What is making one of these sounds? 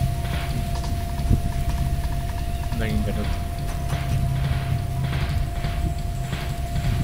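A soft game click sounds as puzzle tiles are selected.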